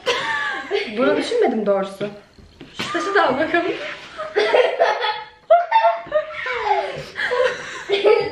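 A girl laughs.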